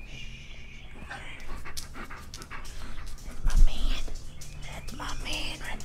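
A man talks to a dog close by.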